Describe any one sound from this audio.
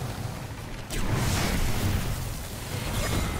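A loud explosion bursts and roars.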